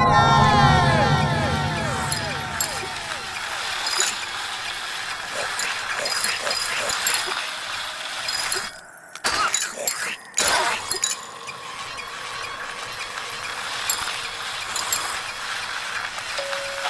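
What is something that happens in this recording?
Gentle electronic music plays with falling chime notes.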